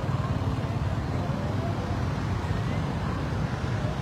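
Car engines idle and rumble in traffic close by.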